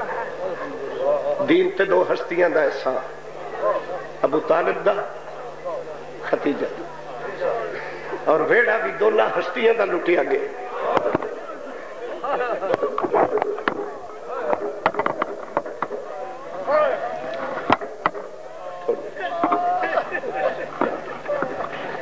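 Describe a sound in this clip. A man speaks with passion into a microphone, his voice carried by loudspeakers with a slight echo.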